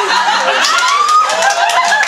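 A young man claps his hands.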